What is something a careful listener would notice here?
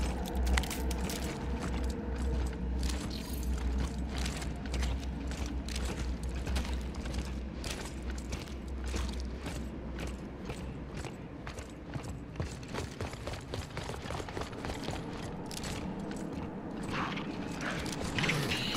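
Heavy boots thud steadily on a hard floor.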